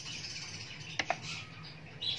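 A knife taps against a plate.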